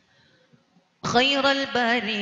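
A man chants loudly into a microphone, heard through loudspeakers.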